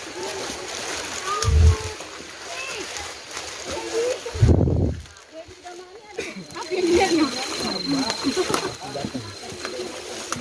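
Young women talk and chatter close by, outdoors.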